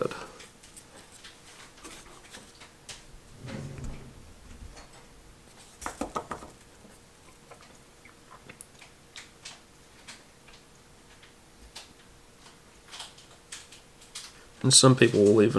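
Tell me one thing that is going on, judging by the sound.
Small clicks and taps come from handling a thin rod.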